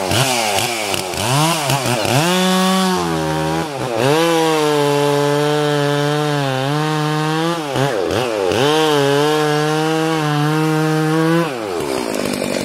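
A chainsaw revs as it cuts through a pine trunk.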